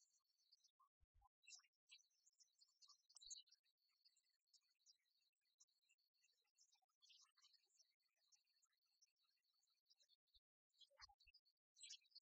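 Game pieces click on a wooden table.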